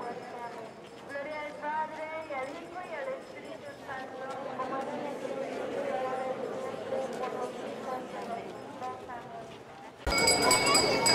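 A crowd of men and women sings slowly together outdoors.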